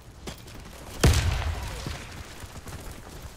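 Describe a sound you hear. A rifle shot cracks and booms.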